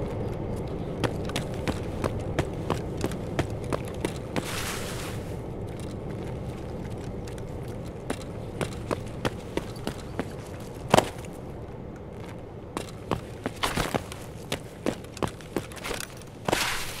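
Footsteps crunch over rock and grass.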